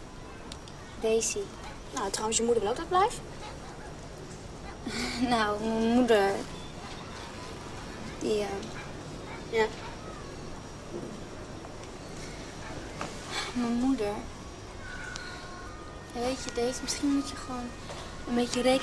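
A second young woman answers in a low, hesitant voice nearby.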